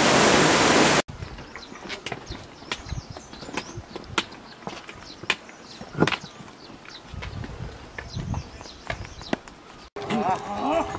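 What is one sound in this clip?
Footsteps crunch on a rocky path.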